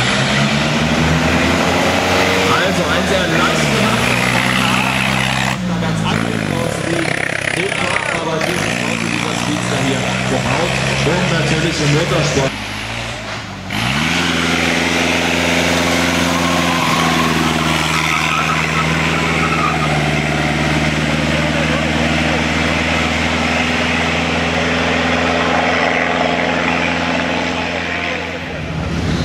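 An old racing car engine roars loudly, revving up and dropping between gear changes.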